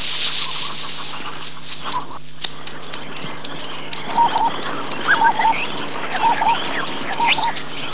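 People run on a dirt track.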